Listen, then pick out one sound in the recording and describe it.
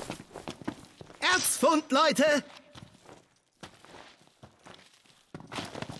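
Footsteps scuff and crunch on rocky ground.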